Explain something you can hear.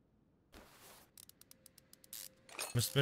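A ratchet wrench clicks rapidly as bolts come loose.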